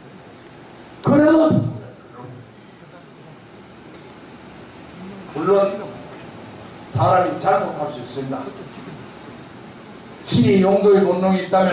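An older man speaks forcefully into a microphone, heard through loudspeakers in a large room, with pauses between phrases.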